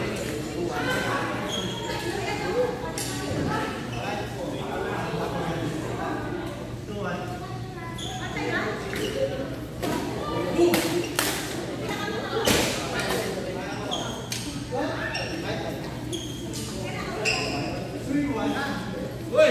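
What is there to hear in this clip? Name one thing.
People chatter in the background of a large echoing hall.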